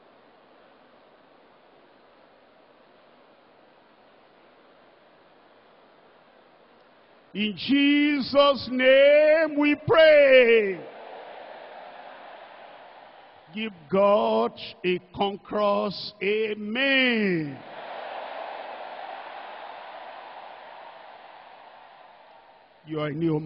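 A large crowd prays and calls out aloud together.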